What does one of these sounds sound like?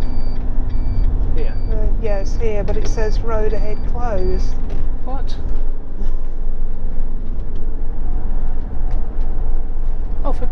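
A car engine hums steadily from inside as the car drives along.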